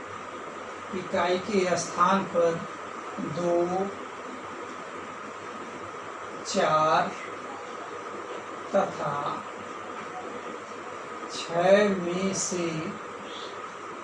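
A man speaks calmly in short phrases, with pauses.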